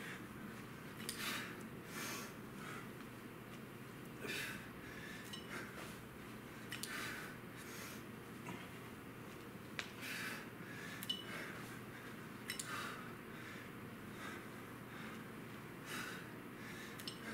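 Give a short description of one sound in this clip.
A man breathes out sharply and rhythmically, close by.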